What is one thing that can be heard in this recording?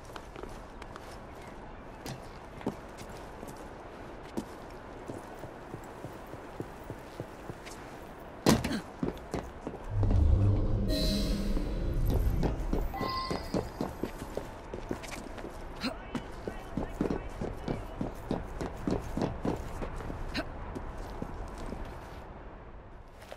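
Quick footsteps tap and scrape across a stone roof.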